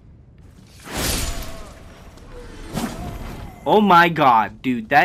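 A blade slashes and strikes with sharp clashes.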